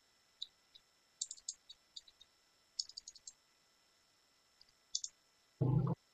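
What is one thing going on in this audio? Keys click on a keyboard in quick bursts.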